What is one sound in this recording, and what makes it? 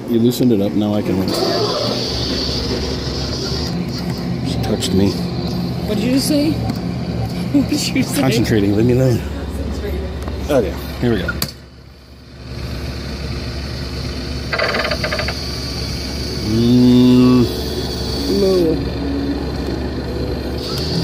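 An arcade machine hums steadily.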